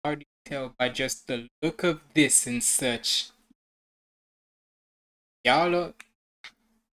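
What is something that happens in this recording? A young man talks animatedly close to a microphone.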